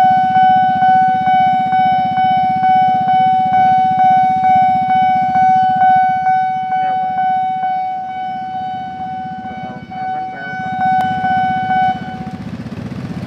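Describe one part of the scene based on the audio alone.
A level crossing bell rings rapidly and steadily, then stops.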